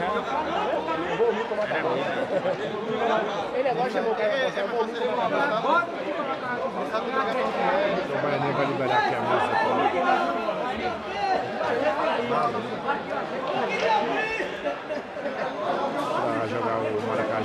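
A crowd of men talks and shouts all around.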